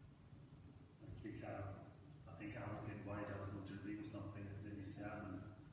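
A man reads aloud calmly in a large echoing hall.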